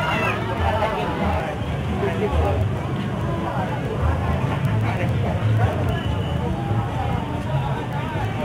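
A dense crowd of men and women chatters outdoors.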